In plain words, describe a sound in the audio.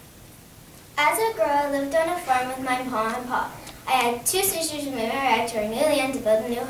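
A young girl speaks clearly and calmly, close to a microphone.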